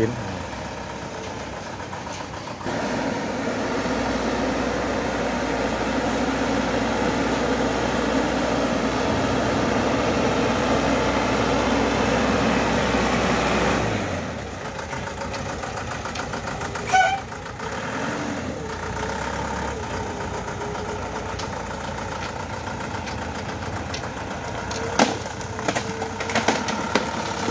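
A truck engine rumbles as it drives slowly closer.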